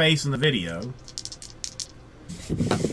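Dice rattle in a hand.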